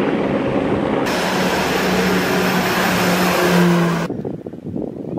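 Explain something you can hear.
A propeller plane's engines drone loudly.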